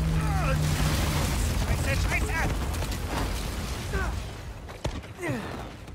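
Debris crashes and rumbles as a building collapses.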